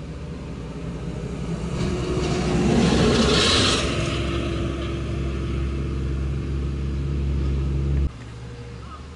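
A car engine revs and roars loudly, passing close by.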